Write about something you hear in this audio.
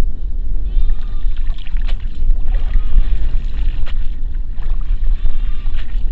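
Water drips from a net lifted out of the water.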